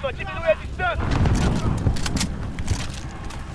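A rifle fires a burst of gunshots nearby.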